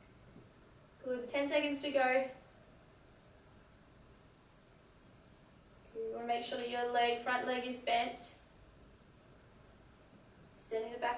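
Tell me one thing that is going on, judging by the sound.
A young woman speaks calmly and clearly, close by, in short phrases.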